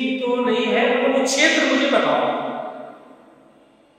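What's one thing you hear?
A man speaks with animation to a room.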